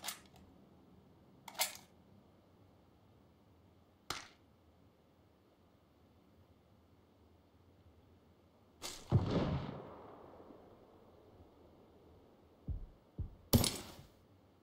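Short clicks and soft rustles of gear being moved sound now and then.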